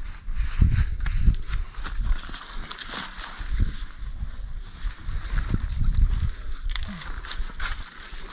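Fabric rustles as a man lifts fishing gear.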